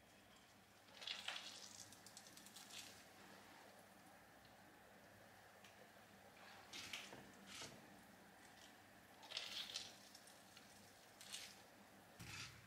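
Hands squeeze wet shredded cabbage with soft squelching.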